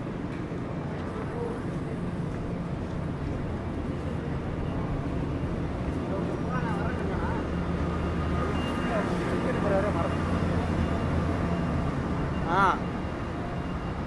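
Traffic hums along a nearby road.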